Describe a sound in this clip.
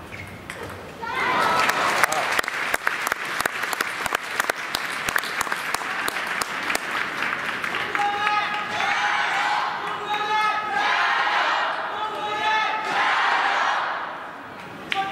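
A crowd applauds and cheers loudly in a large echoing hall.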